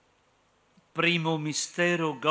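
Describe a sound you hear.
An elderly man speaks calmly into a microphone, in a large echoing space.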